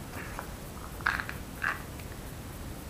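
Plastic packaging rustles as it is handled.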